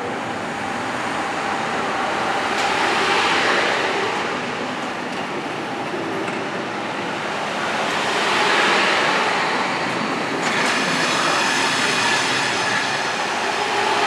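A passenger train rolls past close by, its wheels rumbling and clattering over the rails.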